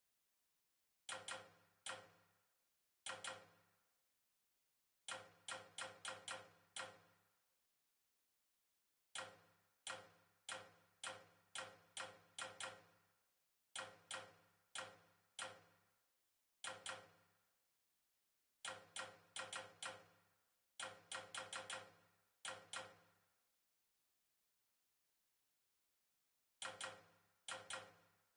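Short ringing menu clicks sound in quick bursts.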